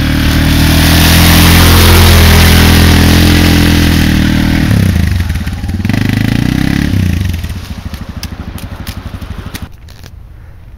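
A quad bike engine roars and revs up close.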